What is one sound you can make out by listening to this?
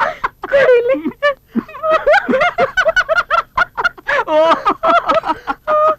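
A middle-aged woman laughs close by.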